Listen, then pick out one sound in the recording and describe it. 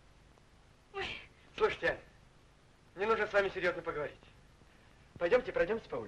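A woman speaks cheerfully nearby.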